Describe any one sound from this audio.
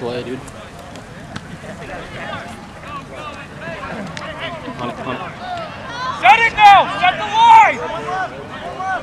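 Young men shout and call out to each other across an open field outdoors.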